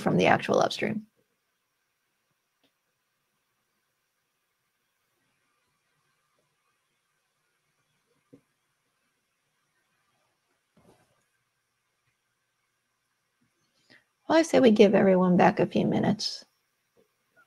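A woman speaks calmly over an online call.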